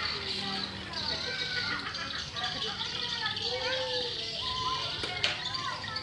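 Children call out to one another outdoors.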